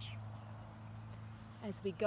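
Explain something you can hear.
A woman speaks briefly close by.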